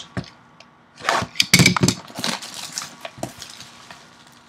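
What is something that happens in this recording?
Plastic wrap crinkles and tears as it is pulled off a box.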